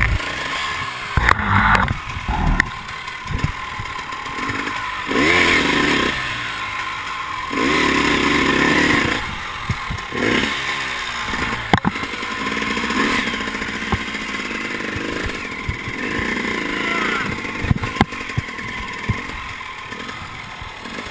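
A dirt bike engine revs hard.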